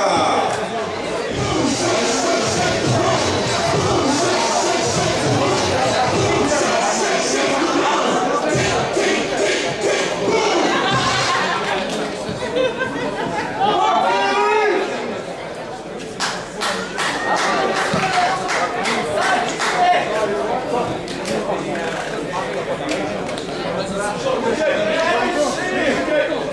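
Men shout and call out to each other on an open field.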